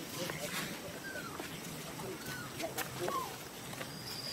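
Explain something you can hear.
A baby monkey gives short, high squeaks.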